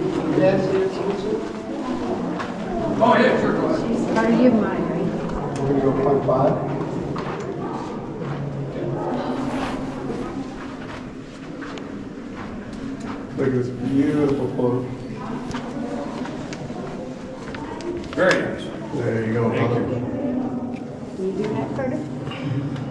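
Several men and women talk nearby, with voices echoing off close rock walls.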